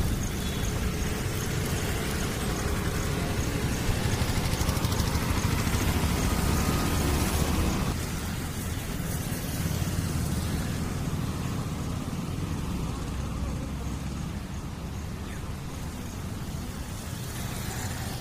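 Wind blows outdoors and rustles tree leaves.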